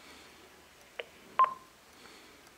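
An answering machine beeps.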